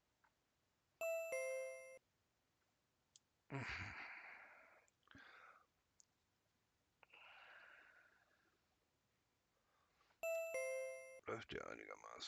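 A cash register chimes with a short, bright electronic tone.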